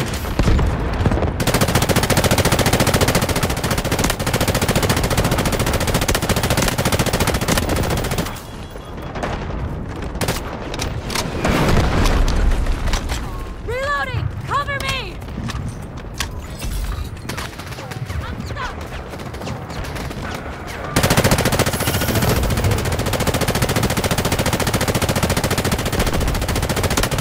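A rifle fires in rapid, loud automatic bursts.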